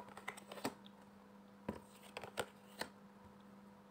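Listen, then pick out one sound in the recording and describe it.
Cards tap and slide on a wooden table.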